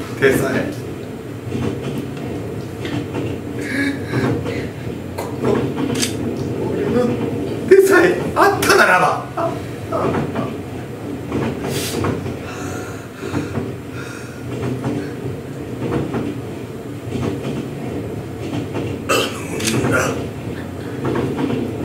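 A man speaks with animation in a room with a slight echo.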